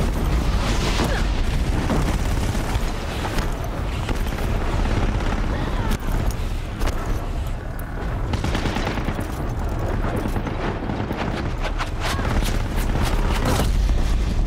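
Explosions boom and crackle.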